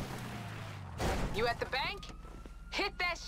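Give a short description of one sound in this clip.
A car door opens with a thud.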